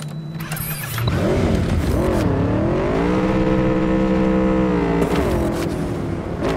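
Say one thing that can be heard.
A motorcycle engine revs up and roars as it rides away.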